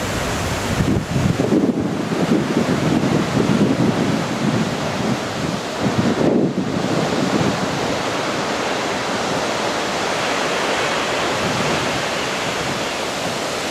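Heavy ocean waves crash and roar against rocks.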